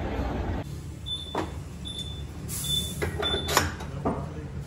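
An electronic machine beeps several times in short, high tones.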